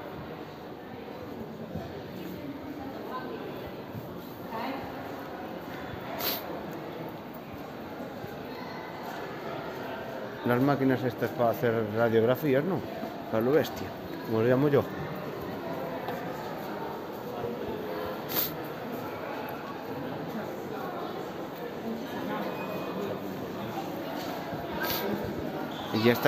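People chatter in the distance in a large echoing hall.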